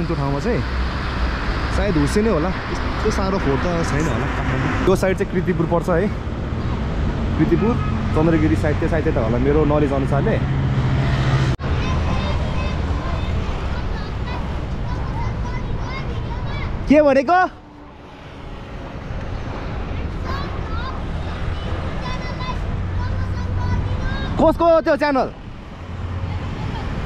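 Traffic rumbles steadily along a wide road below, with vehicles passing by.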